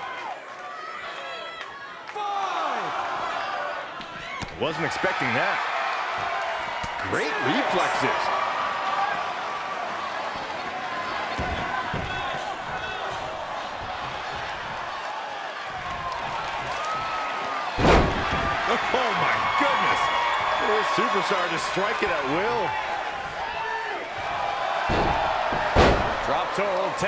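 A crowd cheers loudly throughout.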